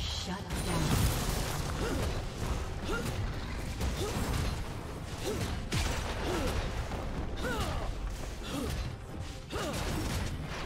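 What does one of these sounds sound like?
Swooping magical tones sound repeatedly.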